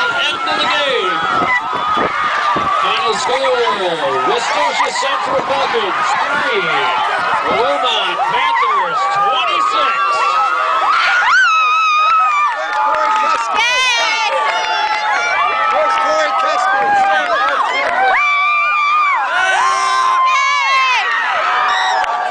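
A crowd of young people shouts and cheers close by.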